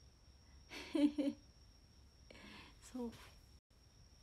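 A young woman laughs briefly.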